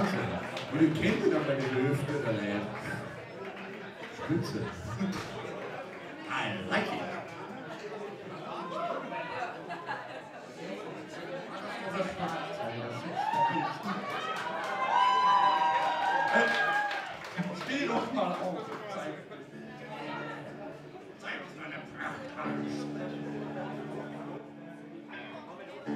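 A rock band plays live music in a large echoing hall.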